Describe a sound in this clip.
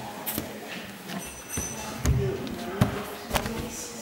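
A microphone stand is knocked with a dull thump.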